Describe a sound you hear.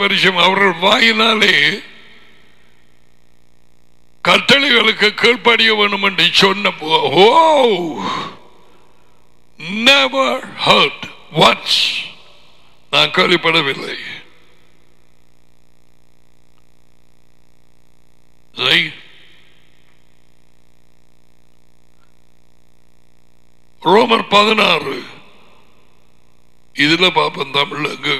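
An elderly man speaks with animation into a headset microphone, in short bursts with pauses.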